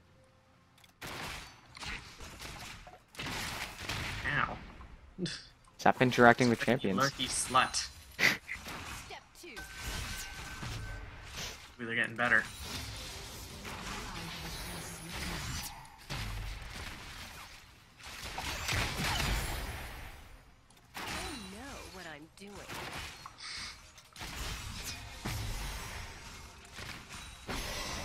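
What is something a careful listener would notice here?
Magic spells and weapon strikes clash and burst in a busy fight.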